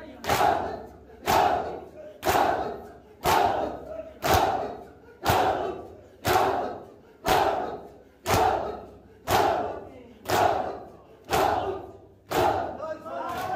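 Many men beat their bare chests in unison, in a steady rhythm of loud slaps.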